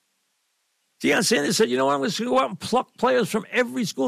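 An older man speaks with animation, close to a microphone.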